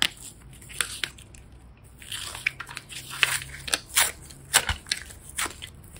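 Soft foam clay squishes and crackles as fingers press it.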